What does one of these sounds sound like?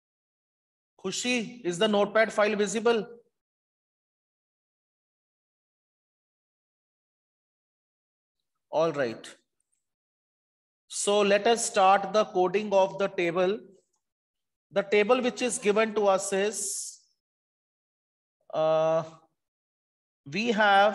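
A woman speaks calmly through a headset microphone, in short bursts with pauses.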